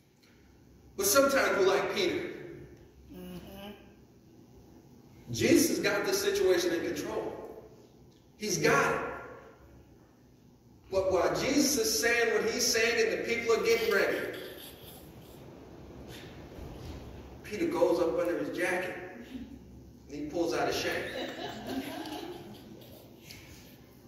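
A man preaches with animation through a microphone in an echoing hall, pausing between phrases.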